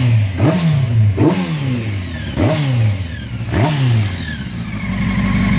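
A motorcycle engine revs up sharply several times, close by.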